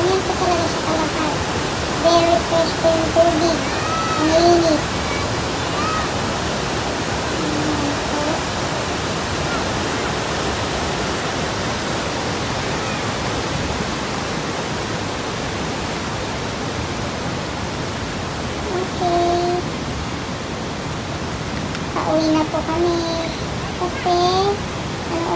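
A waterfall roars and rushing water splashes over rocks.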